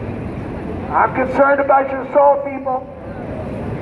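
A man preaches loudly through a megaphone outdoors.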